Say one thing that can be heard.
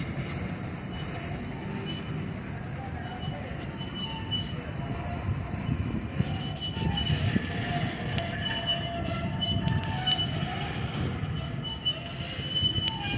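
Steel wheels squeal on the rails of a slow freight train.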